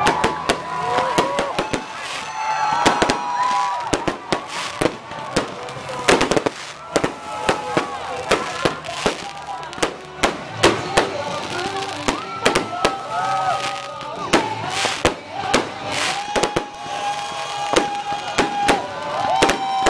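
Fireworks crackle and fizz in the air.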